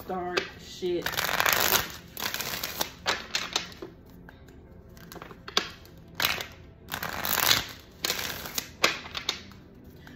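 Playing cards riffle and shuffle in quick bursts.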